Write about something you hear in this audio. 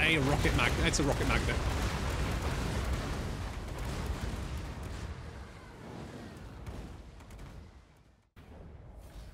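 A battle roars with rumbling blasts and crackling fire, then fades away.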